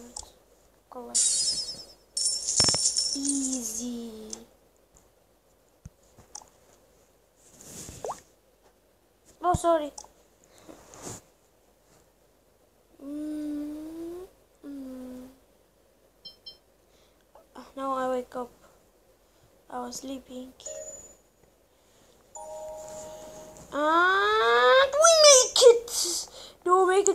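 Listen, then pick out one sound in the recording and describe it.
A young boy speaks with animation, close to a microphone.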